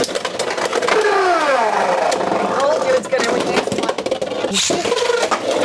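A spinning top clatters against plastic walls.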